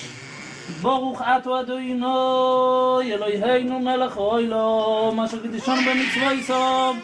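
A group of men sing a chant together.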